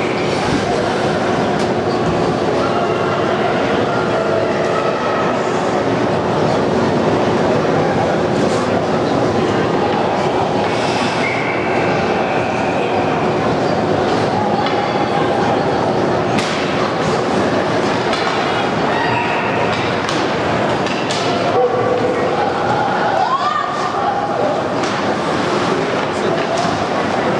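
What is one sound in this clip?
Skates scrape and swish across the ice in a large echoing rink.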